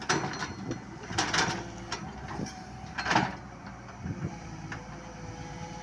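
Soil scrapes and pours from an excavator bucket.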